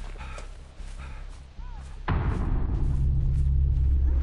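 Footsteps crunch through tall grass.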